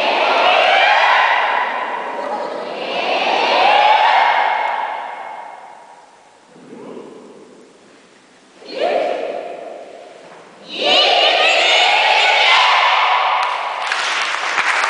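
A large choir sings in a big echoing hall.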